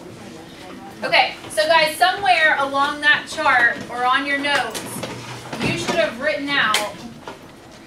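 A woman speaks clearly and calmly.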